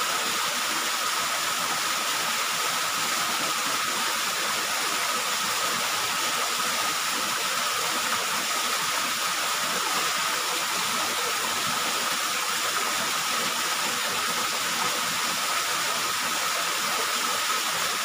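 A small waterfall splashes steadily onto rocks close by.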